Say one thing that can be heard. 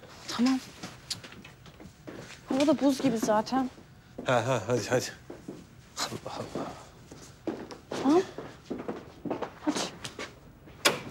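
A young woman speaks tensely nearby.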